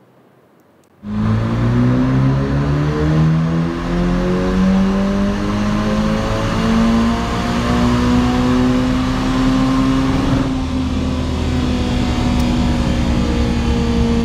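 A car engine roars at high speed, its pitch slowly rising.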